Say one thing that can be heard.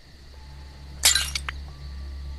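A block crumbles and breaks apart with a sharp crunching burst.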